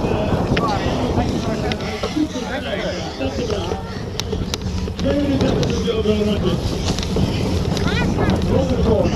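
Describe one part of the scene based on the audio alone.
Wind rumbles across an open microphone.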